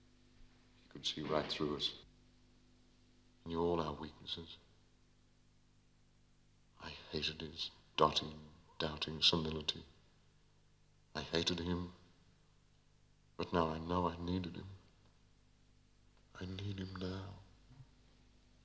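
A man speaks in short, slow phrases nearby.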